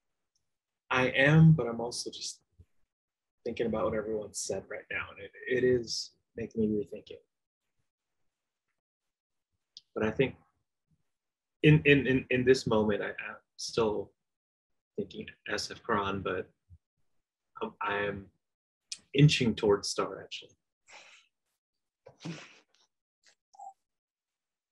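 An adult speaks calmly over an online call, in short phrases with pauses.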